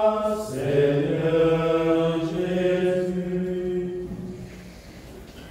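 A man chants slowly in a steady, sung voice, close by.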